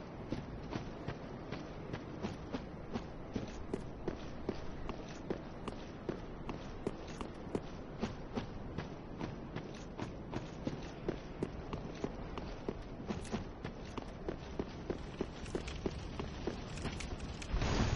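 Armoured footsteps clank quickly and steadily on stone.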